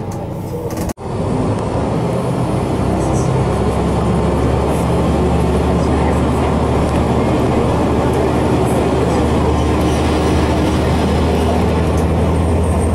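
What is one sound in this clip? A train rumbles as it pulls away and picks up speed.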